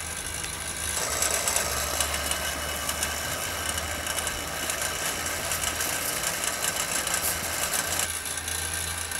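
Water boils and bubbles in a pot.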